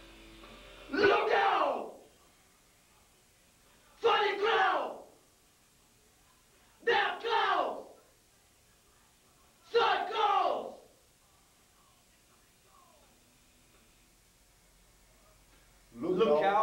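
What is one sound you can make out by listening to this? A man shouts short, loud phrases into a microphone close by, pausing between each.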